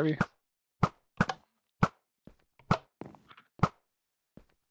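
Sharp hits land one after another in quick succession.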